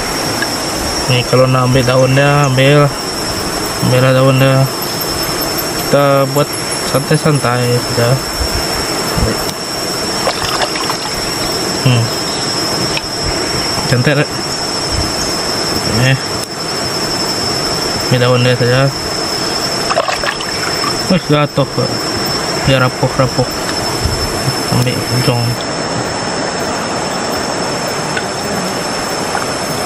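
Shallow water flows and babbles steadily.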